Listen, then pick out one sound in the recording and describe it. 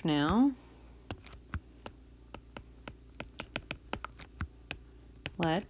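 A stylus taps and clicks on a tablet.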